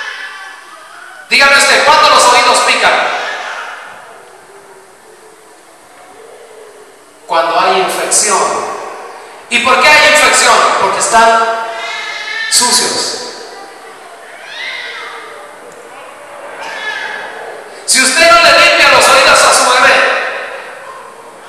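A man preaches with passion into a microphone over loudspeakers in an echoing hall.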